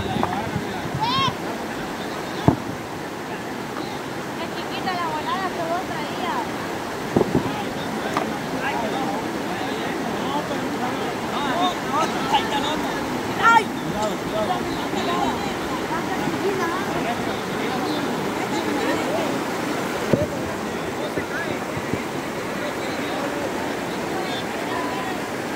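Children and adults shout and chatter in the water nearby.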